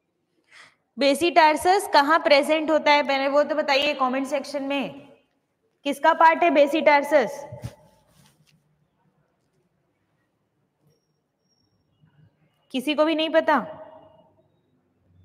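A young woman speaks clearly into a close microphone, in short bursts with pauses.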